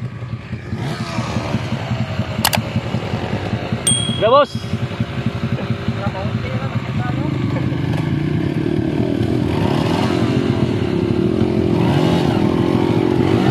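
Dirt bike engines idle with a rapid, rattling putter.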